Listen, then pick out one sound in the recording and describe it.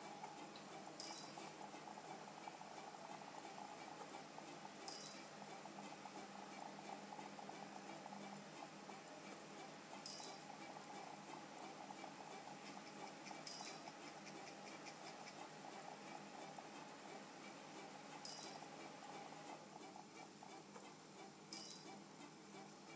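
A handheld game console gives a short bright chime every few seconds.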